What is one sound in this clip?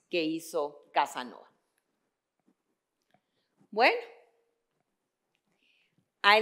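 A woman speaks calmly through a microphone, pausing between phrases.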